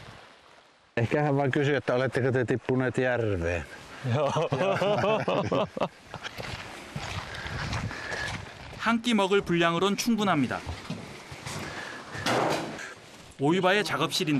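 Two men talk and laugh with animation close by.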